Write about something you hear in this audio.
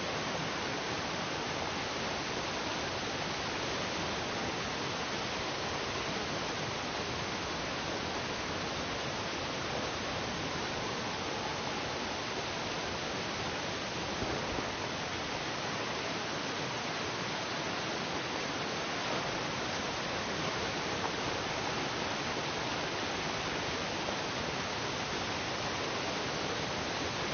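A waterfall rushes steadily.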